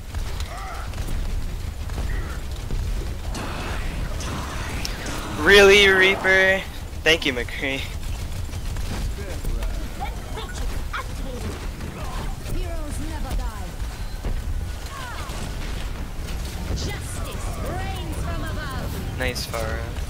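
Rapid gunfire and explosions crackle in a video game.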